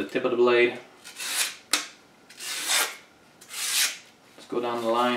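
A blade slices through paper with rasping swishes.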